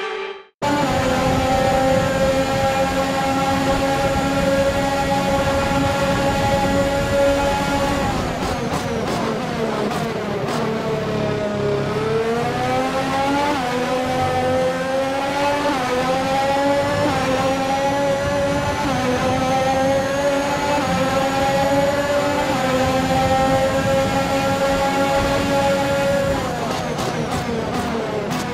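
A racing car engine screams at high revs, dropping in pitch as it brakes and rising again as it speeds up.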